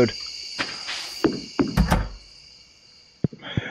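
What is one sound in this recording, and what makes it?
A door opens and shuts.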